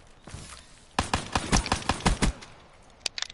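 Rapid gunfire rattles in a short burst.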